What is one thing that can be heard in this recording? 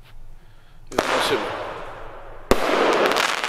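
A firework rocket whooshes up into the sky.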